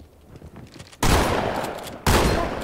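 A shotgun fires twice with loud blasts.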